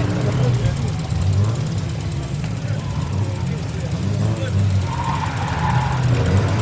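A small car engine revs hard nearby.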